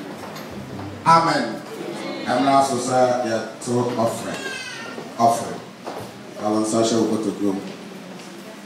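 A man speaks loudly with animation through a microphone and loudspeakers.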